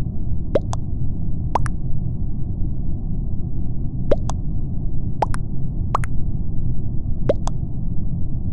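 Short rising chat message pings sound again and again.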